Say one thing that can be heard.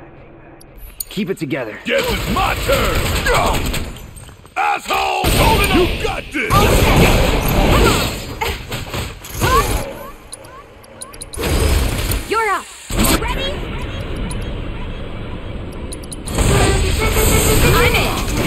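Blades slash and strike with sharp metallic hits.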